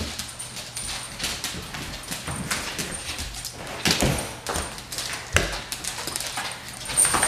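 Dog claws click on a wooden floor.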